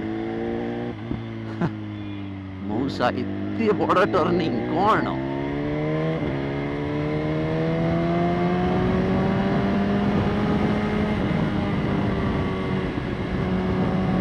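A motorcycle engine hums steadily, rising in pitch as the bike speeds up.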